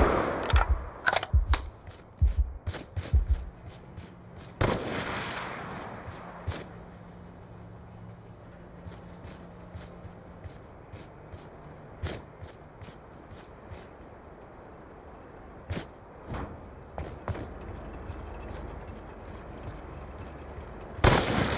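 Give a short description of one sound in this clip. Footsteps thud quickly as someone runs.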